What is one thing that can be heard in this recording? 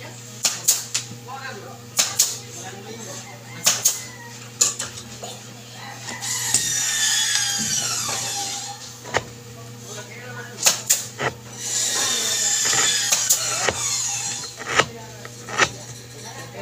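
Wood knocks sharply against wood, again and again.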